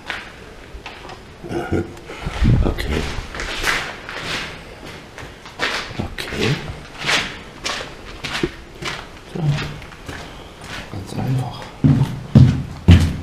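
Footsteps crunch slowly on a gritty floor.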